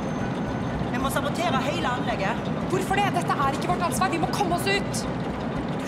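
A woman speaks urgently nearby.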